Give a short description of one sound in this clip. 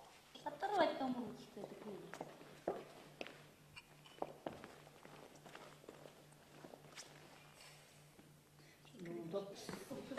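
High heels tap on a wooden floor.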